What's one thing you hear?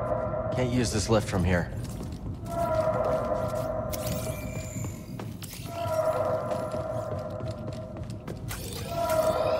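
Footsteps tap on a hard metal floor.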